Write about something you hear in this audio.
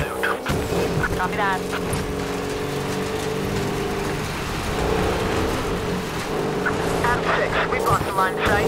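An engine roars steadily as a truck drives fast.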